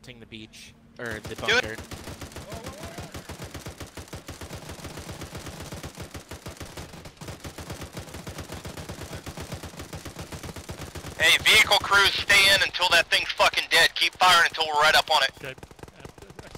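A heavy machine gun fires rapid bursts close by.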